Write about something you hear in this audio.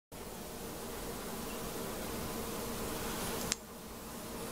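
A young girl blows out a candle with a long, steady breath.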